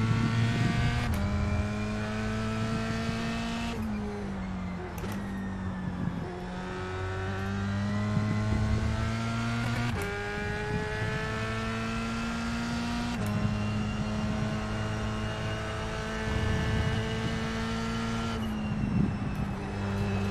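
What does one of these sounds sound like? A racing car engine roars, its pitch climbing and dropping sharply with each gear change.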